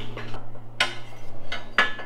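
A metal tool clinks against a metal stand.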